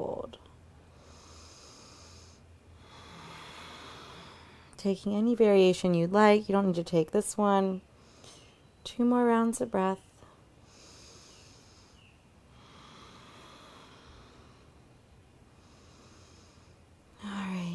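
A young woman breathes in and out slowly and deeply.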